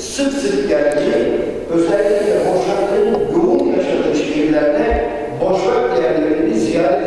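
A young man speaks calmly into a microphone in a reverberant room.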